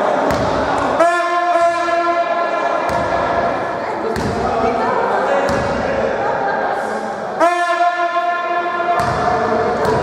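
A referee's whistle blows loudly in a large echoing hall.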